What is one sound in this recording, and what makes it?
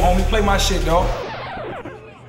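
A music track with a heavy bass beat plays.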